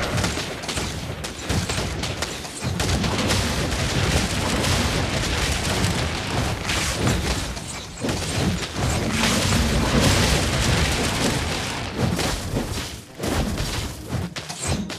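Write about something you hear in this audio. Game figures clash with swooshing and crackling effects.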